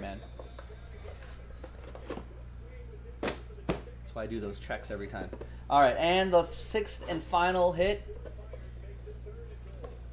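Cardboard boxes knock and rustle as they are handled.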